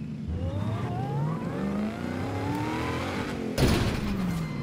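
A car engine revs hard, its pitch climbing as it speeds up.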